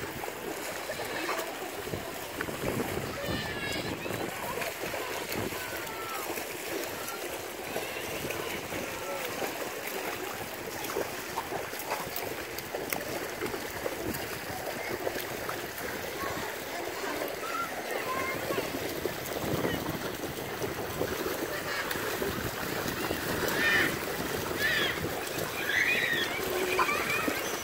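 A child splashes water while swimming.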